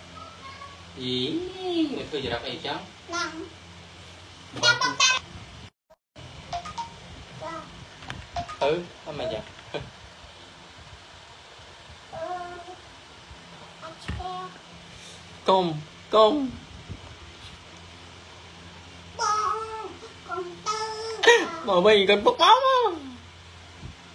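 A young child speaks and whines close by.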